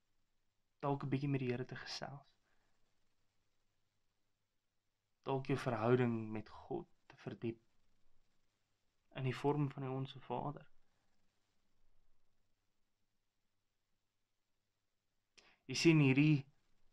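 A young man speaks calmly and close to a microphone, in short phrases with pauses.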